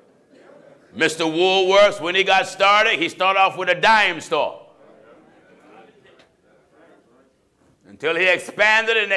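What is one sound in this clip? A man sings out loudly and with fervour into a microphone.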